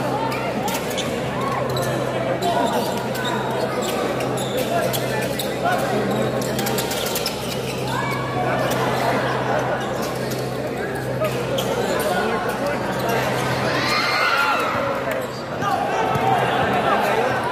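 A large crowd cheers and shouts in a big echoing gym.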